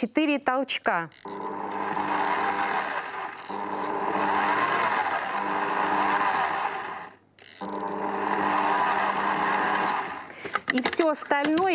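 A stand mixer whirs steadily as it mixes dough.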